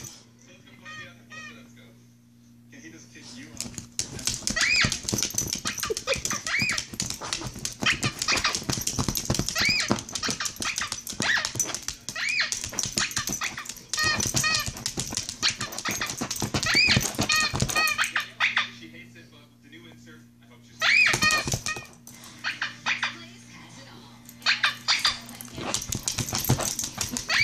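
A tablet game plays short, high chirping squeaks over and over.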